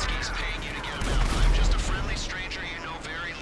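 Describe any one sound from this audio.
An aircraft explodes with a deep boom.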